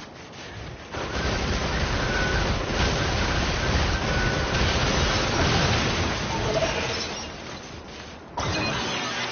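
Loud blasts and clashing blows ring out in a fierce fight.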